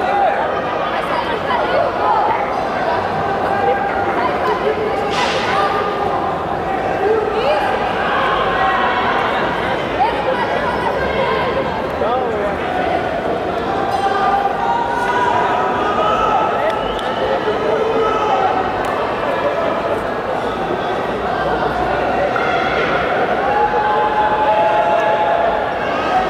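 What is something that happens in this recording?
Spectators and coaches call out and chatter in a large echoing hall.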